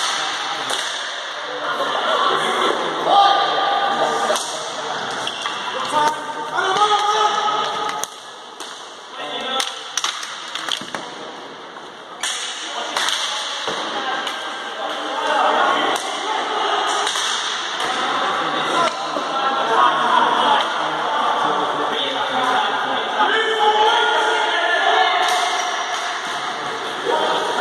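Hockey sticks clack against a ball and the floor in a large echoing hall.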